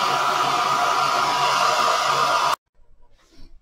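A hair dryer blows with a loud steady whoosh, then cuts off abruptly.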